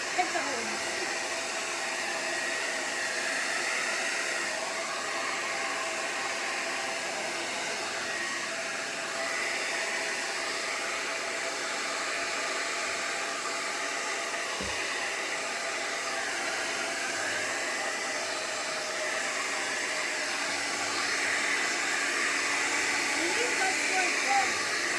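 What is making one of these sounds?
A hair dryer blows with a steady whooshing hum.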